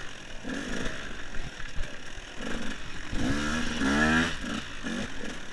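An enduro motorcycle engine revs up and down.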